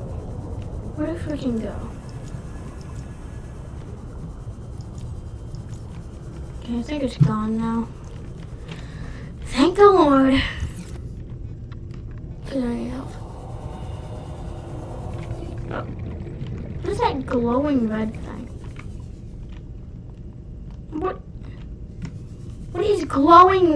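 A young child talks in short, lively bursts close to a microphone.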